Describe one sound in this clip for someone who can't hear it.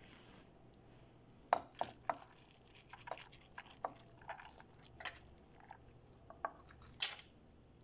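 Rice is tipped into a pan with soft scrapes and taps.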